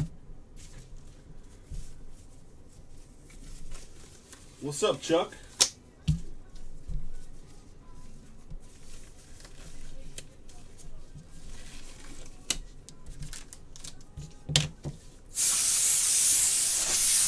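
Foil packs rustle and crinkle as they are handled.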